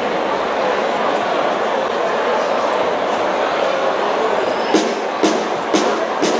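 A brass band plays loudly.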